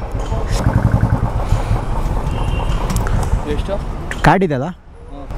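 A motorcycle engine idles with a low, throbbing rumble close by.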